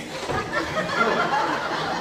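A woman shouts loudly.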